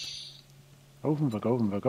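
An elderly man's voice speaks through a loudspeaker.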